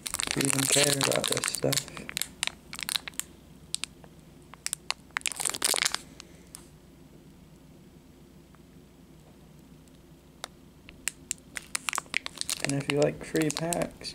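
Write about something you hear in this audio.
A foil wrapper crinkles and rustles as it is handled.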